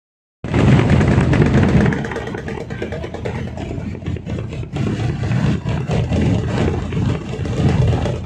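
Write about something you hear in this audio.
A bass drum booms in a steady beat.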